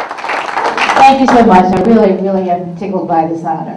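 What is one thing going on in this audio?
A woman speaks into a microphone, heard through a loudspeaker.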